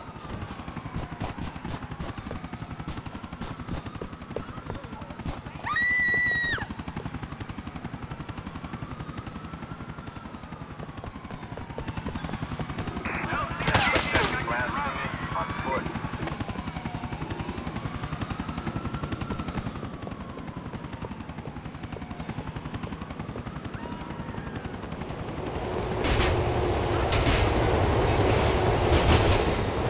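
Footsteps run quickly over pavement.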